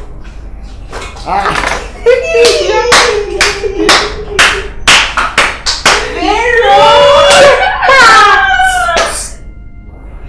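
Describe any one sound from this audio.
A woman talks and laughs with animation close by.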